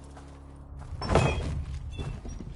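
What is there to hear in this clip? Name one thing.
Metal armour clanks as a man moves.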